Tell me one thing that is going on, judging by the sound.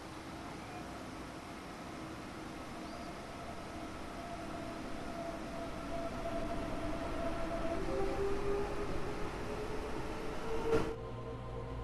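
A passing train rolls in with a rising electric whine.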